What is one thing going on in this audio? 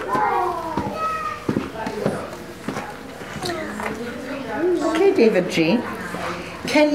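Young children talk and chatter nearby.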